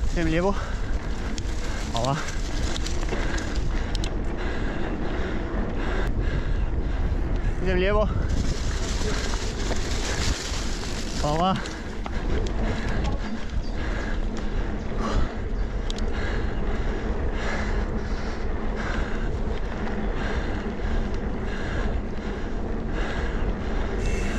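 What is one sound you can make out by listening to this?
Wind rushes loudly past the microphone outdoors.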